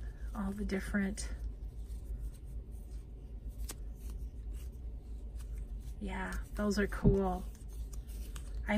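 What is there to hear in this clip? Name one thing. Cardboard discs click and rub softly against each other.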